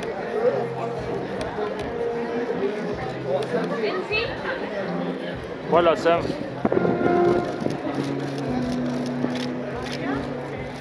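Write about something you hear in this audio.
A crowd of men and women chatter and call out nearby.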